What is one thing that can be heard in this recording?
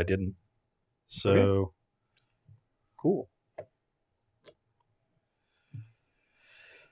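A man speaks in short bursts through a microphone.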